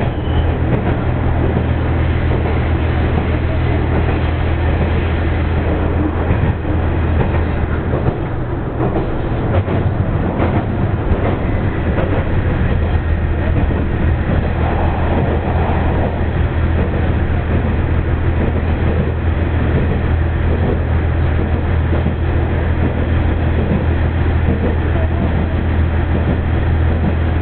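A train rumbles steadily along the tracks with a deep, constant drone.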